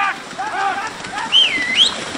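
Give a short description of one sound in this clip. A carriage horse splashes through shallow water.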